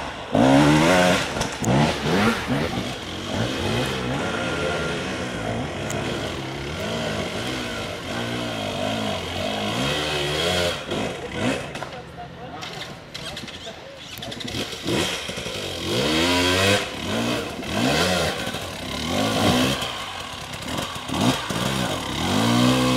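Motorcycle tyres clatter over loose rocks.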